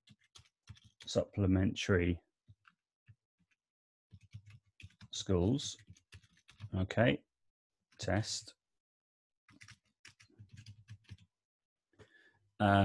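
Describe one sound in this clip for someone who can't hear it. A man speaks calmly and close to a microphone, in short bursts.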